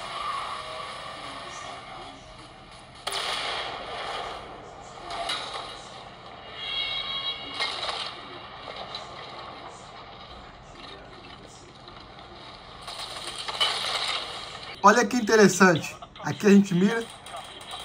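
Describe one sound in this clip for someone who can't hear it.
Game sounds and music play from a small handheld speaker.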